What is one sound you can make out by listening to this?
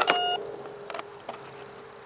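Hands click a plastic part on a foam model plane.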